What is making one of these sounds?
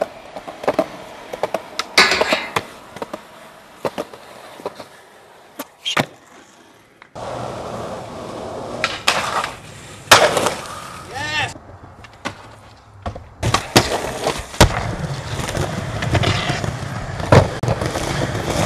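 Skateboard wheels roll and grind on concrete.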